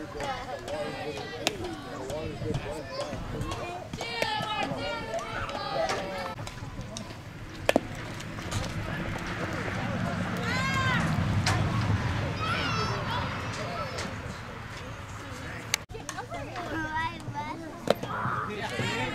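Young girls shout and cheer across an open field.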